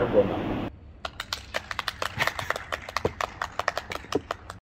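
Two women clap their hands.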